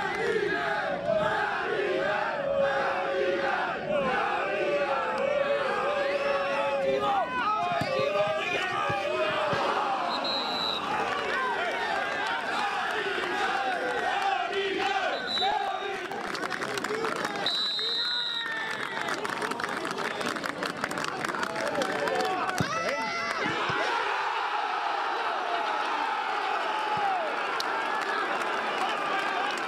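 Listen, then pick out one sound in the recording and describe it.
A large crowd of fans sings and chants loudly outdoors.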